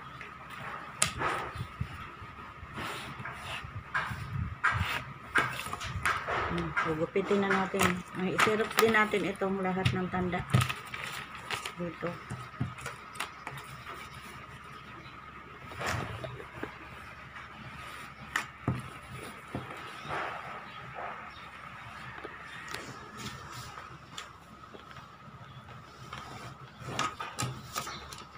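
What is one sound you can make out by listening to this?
Stiff paper rustles and creases as it is folded by hand.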